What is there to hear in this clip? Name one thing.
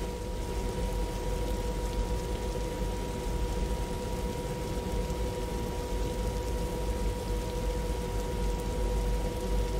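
Jet engines roar steadily as an airliner taxis.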